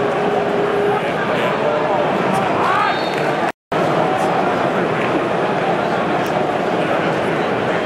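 A large stadium crowd roars and shouts steadily.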